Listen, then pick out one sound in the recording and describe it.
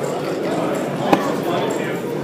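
Dice rattle and land on a wooden board.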